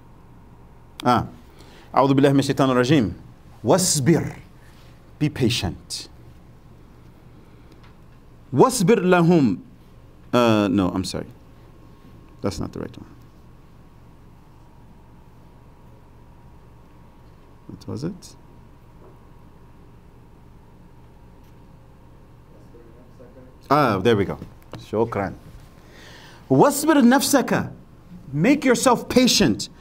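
A middle-aged man speaks calmly into a close microphone, pausing often.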